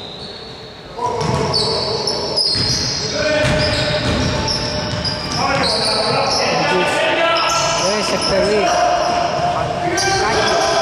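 Basketball shoes squeak on the court floor.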